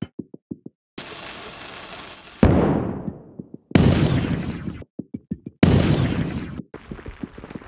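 Balls rush and pour down in loud bursts.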